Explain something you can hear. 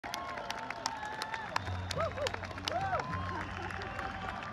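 Audience members clap their hands.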